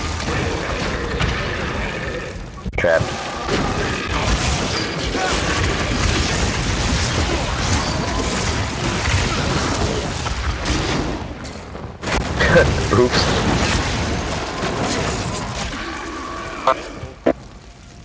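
Fiery blasts and clashing combat sounds from a video game burst and crackle.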